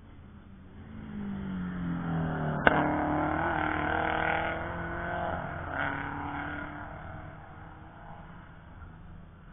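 A race car engine roars past and fades into the distance.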